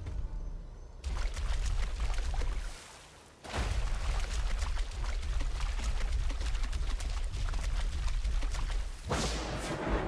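Footsteps splash quickly through shallow water.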